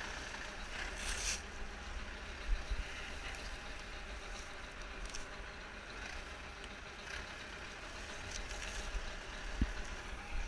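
Dry straw rustles and scrapes as something brushes against a hay bale.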